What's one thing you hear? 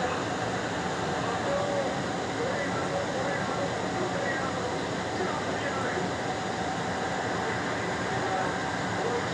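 A stadium crowd roars steadily through a television loudspeaker.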